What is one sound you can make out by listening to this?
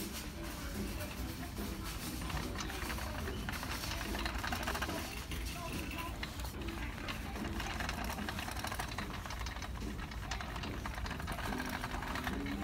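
Hangers clack against a metal rail.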